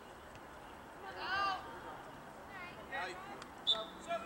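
Spectators on the sideline shout and cheer outdoors.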